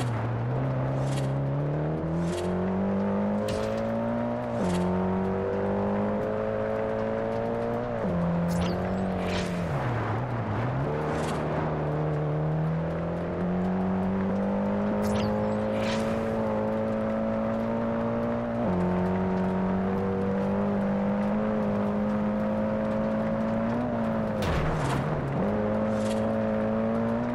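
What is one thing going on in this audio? A car engine roars, its pitch climbing and dropping as the gears shift.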